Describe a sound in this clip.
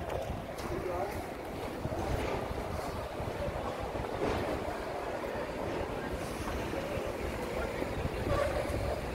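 Wind blows outdoors with a low, steady rumble.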